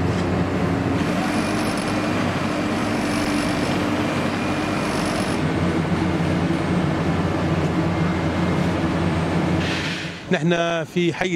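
A heavy machine's engine rumbles steadily up close.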